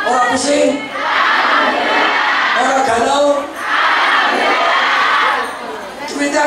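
A crowd cheers and chants loudly.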